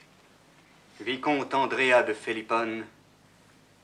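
A young man speaks up from a short distance.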